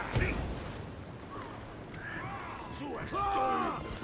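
Flames burst and roar.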